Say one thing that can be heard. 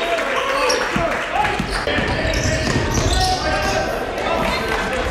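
A basketball bounces on a wooden court.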